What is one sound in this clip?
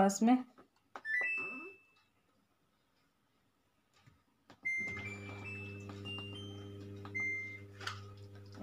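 An appliance's buttons beep as they are pressed.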